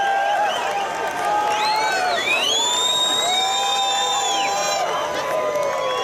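A rock band plays loudly in a large hall.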